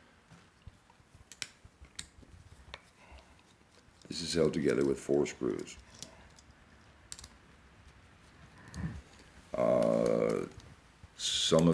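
A small screwdriver scrapes and taps on metal.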